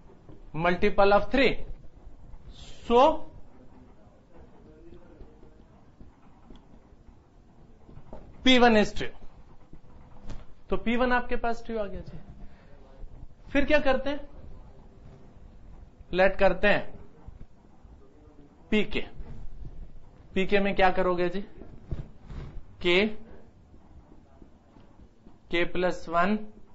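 A middle-aged man speaks calmly in short phrases, close to a microphone, in a slightly echoing room.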